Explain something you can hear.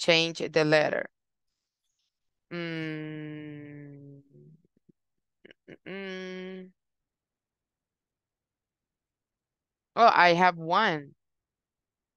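A young woman speaks slowly over an online call, drawing out her words.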